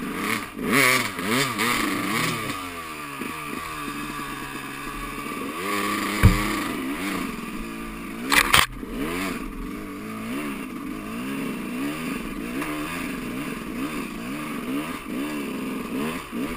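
A dirt bike engine revs up and down, close by.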